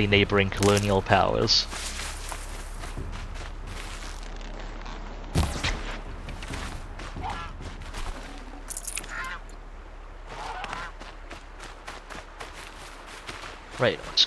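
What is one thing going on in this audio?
Footsteps rustle through grass and scrape over rock.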